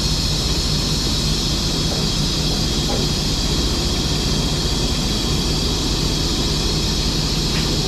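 A heavy truck engine rumbles steadily while driving slowly.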